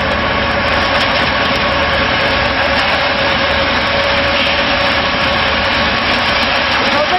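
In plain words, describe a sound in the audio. A concrete mixer's engine drones and its drum rumbles steadily.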